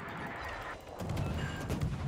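Naval guns boom in the distance.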